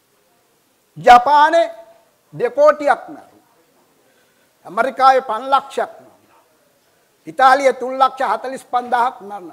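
An older man speaks loudly and with animation into a microphone, in short bursts.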